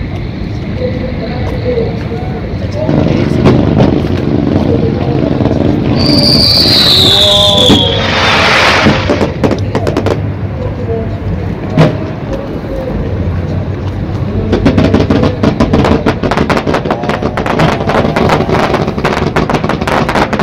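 Fireworks boom in the distance.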